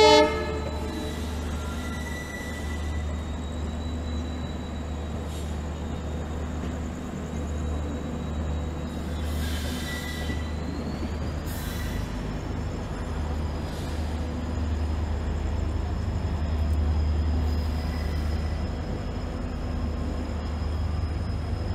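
A train rumbles steadily along the tracks, heard from a carriage window.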